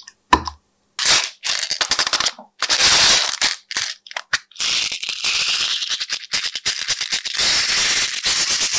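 Crunchy foam beads crackle and rustle as they are poured.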